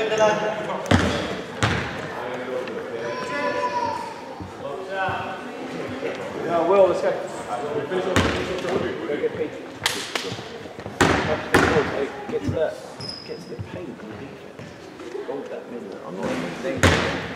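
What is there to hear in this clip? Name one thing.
Young men shout and call out across the court.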